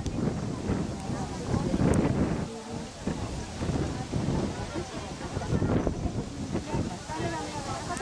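Leaves rustle softly in a light breeze.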